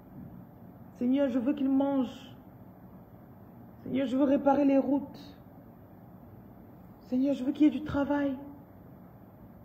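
A woman speaks close up in short, emotional phrases with long pauses between them.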